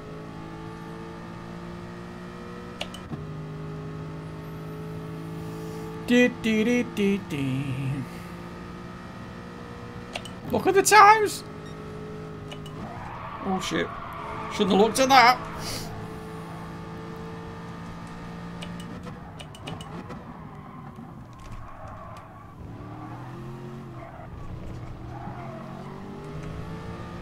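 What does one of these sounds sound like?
A racing car engine drones steadily, changing pitch as it shifts gears.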